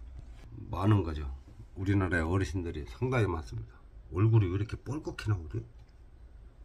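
A middle-aged man talks calmly close up.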